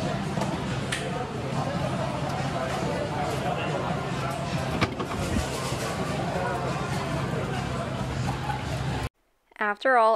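Arcade machines hum and play jingles steadily nearby.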